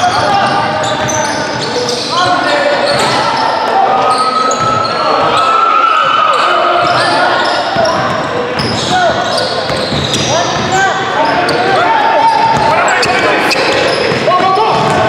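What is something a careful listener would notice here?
Young men call out to each other while playing.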